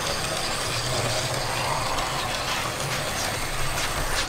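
A small model locomotive whirs and clicks over the rail joints close by.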